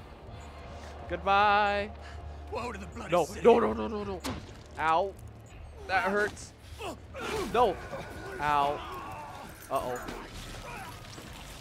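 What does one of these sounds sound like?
A man growls and shouts menacingly, close by.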